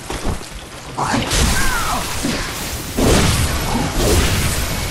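A creature shrieks and snarls loudly.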